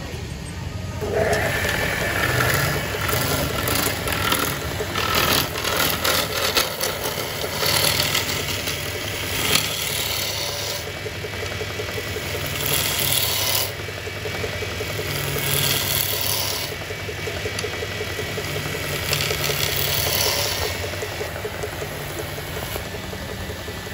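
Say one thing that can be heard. A lathe spins with a steady low rumble.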